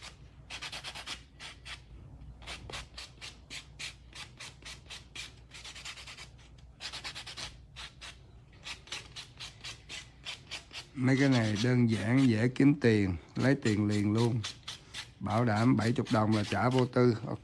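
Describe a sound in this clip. A nail buffer rasps quickly back and forth across a fingernail.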